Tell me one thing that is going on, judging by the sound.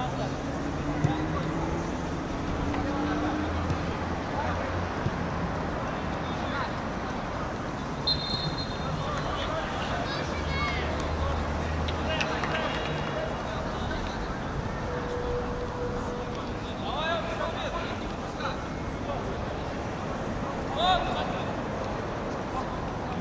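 Players and spectators shout from across an open field.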